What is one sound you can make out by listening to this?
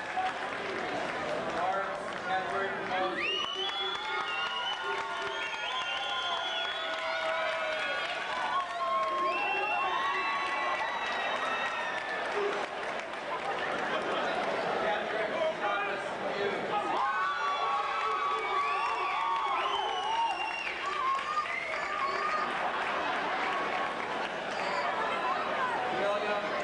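A crowd applauds steadily.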